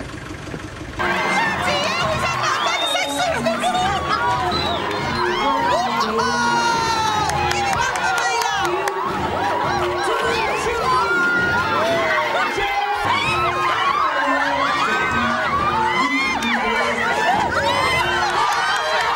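A crowd of women shrieks, cheers and laughs loudly in a noisy room.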